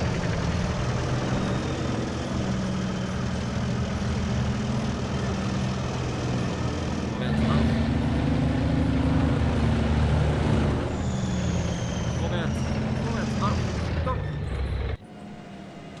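A tank engine rumbles loudly as it drives.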